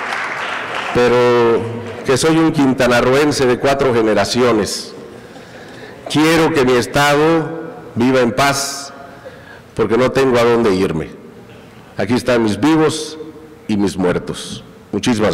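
A middle-aged man speaks with emphasis through a microphone, his voice echoing in a large hall.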